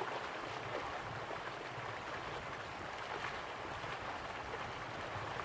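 Waterfalls splash and rush steadily in the distance.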